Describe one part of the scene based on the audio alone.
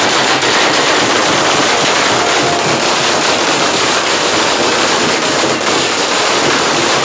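Strings of firecrackers crackle and pop in rapid, loud bursts.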